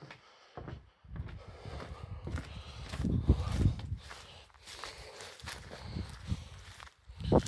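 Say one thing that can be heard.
Footsteps swish through dry grass.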